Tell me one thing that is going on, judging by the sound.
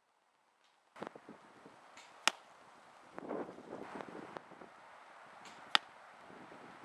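Pellets smack into a paper target.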